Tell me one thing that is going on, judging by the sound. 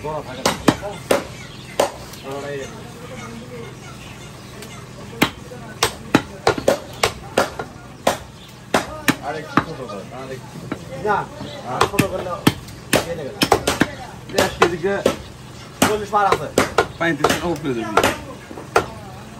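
A cleaver chops beef on a wooden block with sharp thuds.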